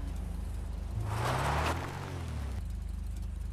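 Tyres spin and spray loose sand in a short rush.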